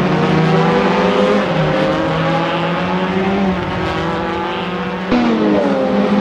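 A racing car engine roars at high revs, its pitch rising and falling.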